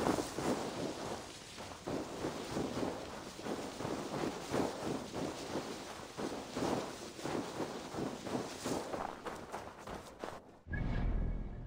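Footsteps crunch through snow and dry grass.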